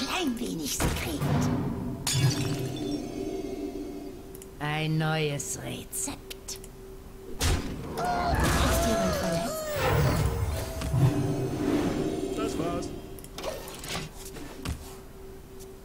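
Game effects chime and whoosh as cards are played.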